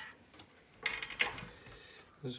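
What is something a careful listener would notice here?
Metal parts click and rattle.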